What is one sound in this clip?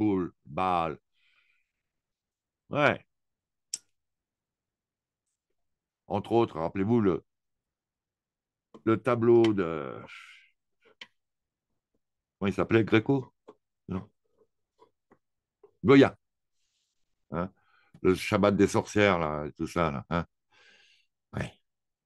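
A man speaks in short bursts into a microphone, with pauses.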